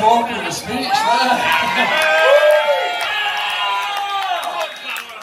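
A group of men sings loudly together.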